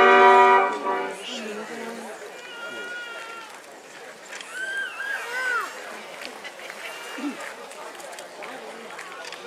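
A crowd murmurs and chatters quietly.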